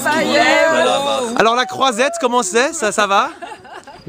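A woman speaks cheerfully close by.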